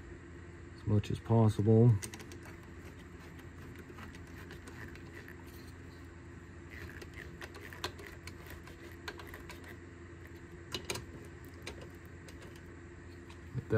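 A screwdriver turns a metal hose clamp with faint ticking.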